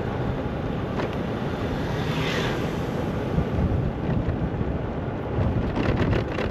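Tyres roll along an asphalt path.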